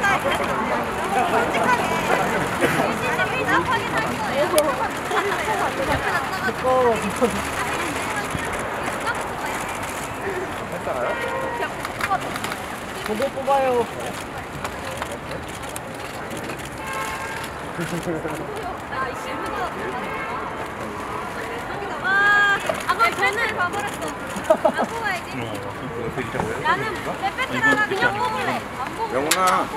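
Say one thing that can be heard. A crowd of voices murmurs all around.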